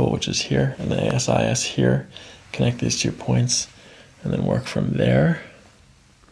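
A man speaks calmly and clearly close to a microphone.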